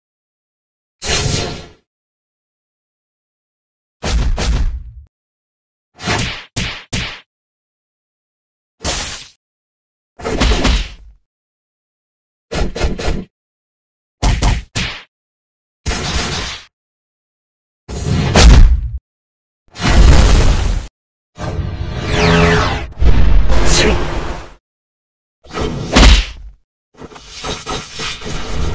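Game attack effects whoosh and clang in short bursts.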